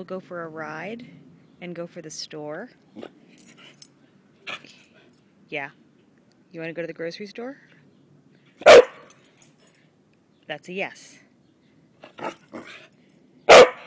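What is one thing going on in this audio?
A small dog whines in high, rising yelps up close.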